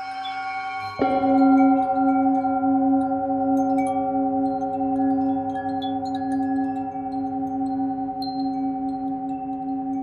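A metal singing bowl is struck and rings out loudly.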